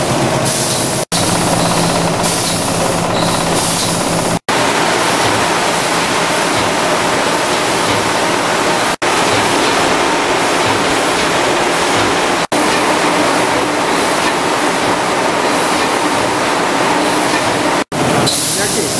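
Small hard pieces rattle as they tumble along a conveyor.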